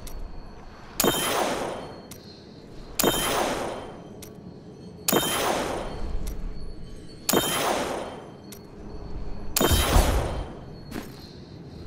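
A magical whoosh with a chime swells and fades.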